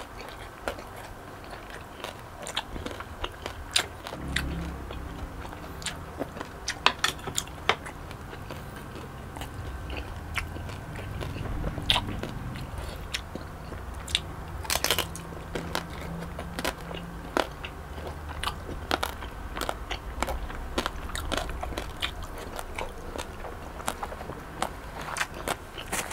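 A young man chews food noisily and smacks his lips close to a microphone.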